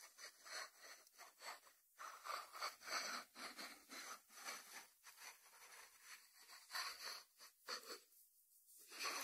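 Fingertips tap on a ceramic lid.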